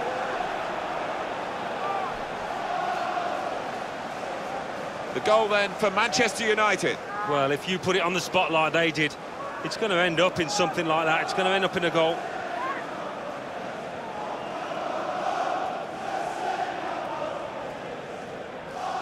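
A large stadium crowd cheers and chants steadily.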